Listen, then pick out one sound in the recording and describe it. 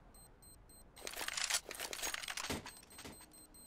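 A rifle is picked up with a short metallic rattle.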